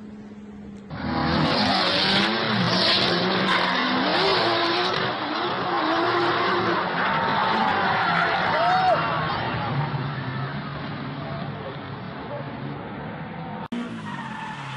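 Engines roar as cars drift on a track.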